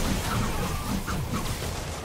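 A web shooter fires with a sharp zip.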